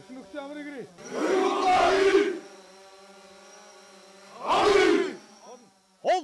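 A group of young men shout loudly in unison outdoors.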